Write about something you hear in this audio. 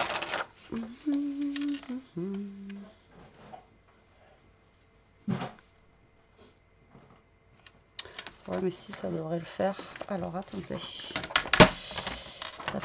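Paper rustles as it is handled and shifted.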